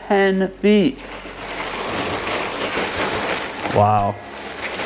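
Plastic wrap crinkles and rustles under hands.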